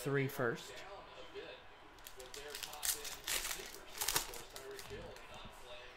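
Foil wrappers crinkle and tear as packs are opened.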